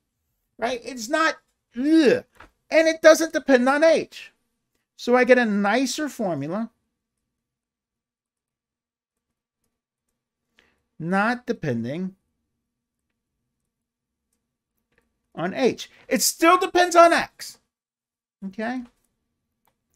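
A middle-aged man speaks calmly and explains, close to a microphone, with pauses.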